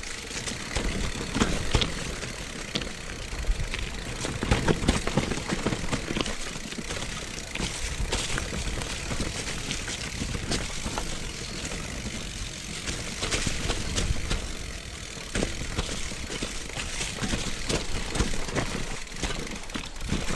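Bicycle tyres crunch over dry leaves and dirt on a bumpy trail.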